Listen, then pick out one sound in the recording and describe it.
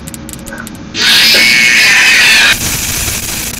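A loud shrieking screech blares suddenly.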